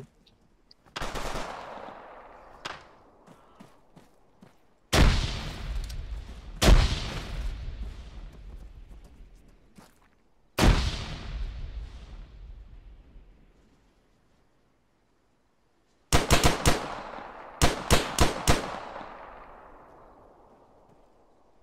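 Rifle shots crack and echo.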